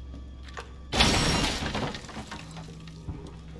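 A wooden crate splinters and its boards clatter to the floor.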